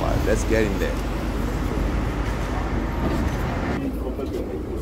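Busy street traffic rumbles outdoors.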